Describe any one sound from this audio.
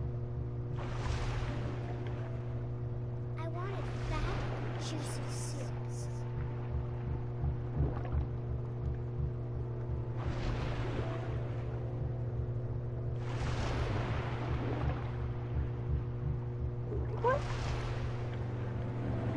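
A low underwater rumble hums steadily.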